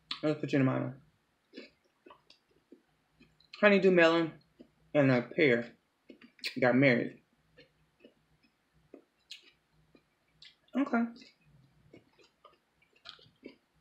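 A woman crunches and chews fruit with wet mouth sounds.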